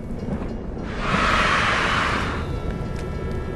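An explosion bursts with a loud whoosh.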